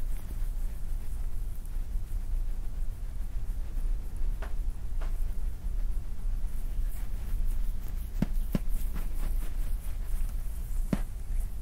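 Oiled hands rub and squeeze skin with soft slick sounds.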